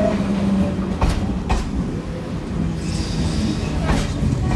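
Metal wheels clatter on the rails.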